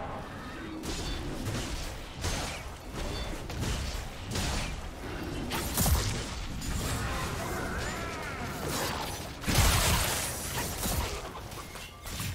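Game combat effects whoosh, clash and burst in quick succession.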